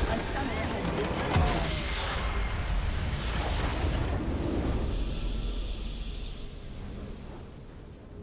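A building explodes with a loud rumbling blast.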